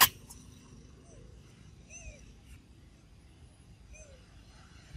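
A baby monkey squeaks in short, high chirps.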